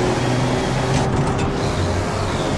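A racing truck's gearbox shifts up with a brief break in the engine's roar.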